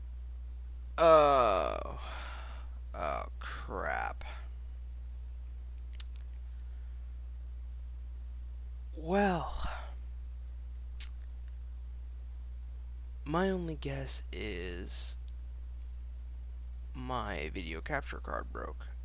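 A man speaks in short, animated bursts through a microphone.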